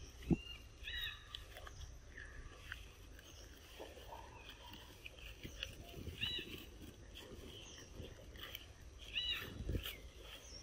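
A baby monkey squeaks in short, high cries.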